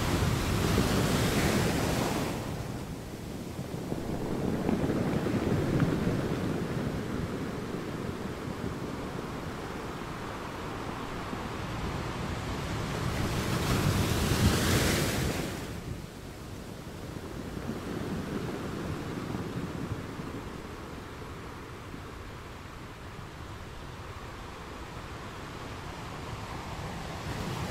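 Ocean waves crash and roar against rocks, rising and falling in surges.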